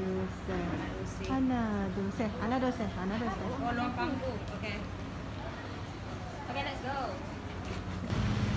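Young women talk and laugh cheerfully close by.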